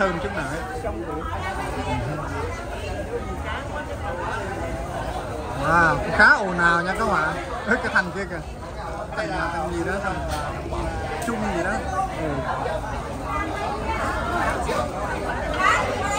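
A crowd of men and women chatter all around in a busy indoor hall.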